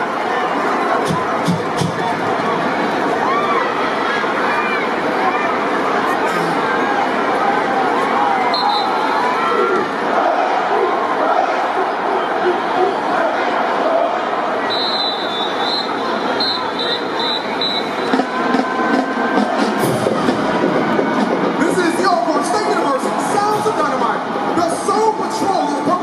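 A large crowd cheers and roars in a big echoing stadium.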